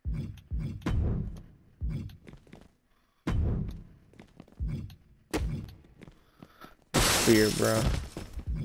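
Heavy thuds of bodies slamming onto a mat repeat.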